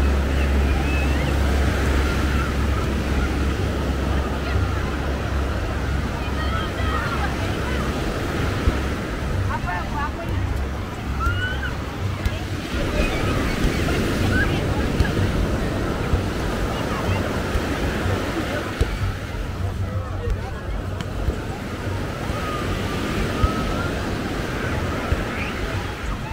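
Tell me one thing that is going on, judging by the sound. Waves wash onto the shore.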